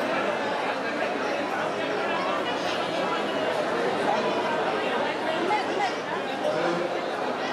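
A crowd of men and women chatter loudly in a busy, echoing hall.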